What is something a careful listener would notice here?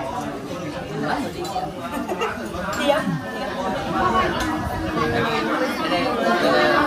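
Several adults talk and chat casually close by in a room.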